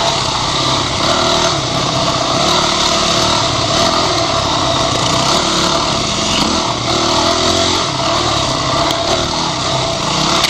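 A dirt bike engine revs loudly up close, rising and falling in pitch.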